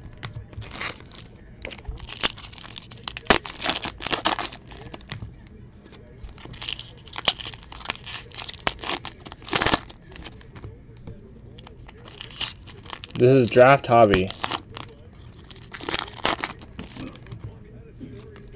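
Trading cards shuffle and slap onto a pile.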